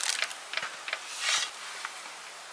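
A shovel scrapes and scoops through dry sand.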